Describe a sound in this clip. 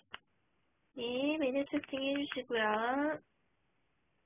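A young woman speaks briefly in a high, sing-song voice close by.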